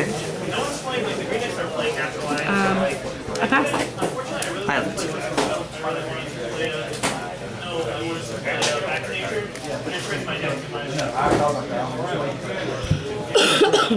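Playing cards are slapped down softly onto a mat.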